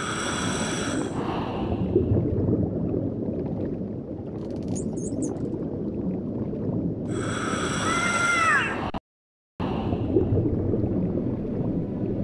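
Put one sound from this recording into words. Bubbles from a diver's breathing gurgle and rumble underwater.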